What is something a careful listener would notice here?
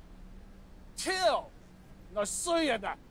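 A man speaks scornfully, close by.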